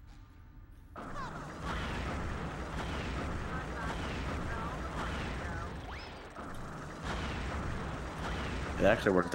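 Bubbles fizz and pop.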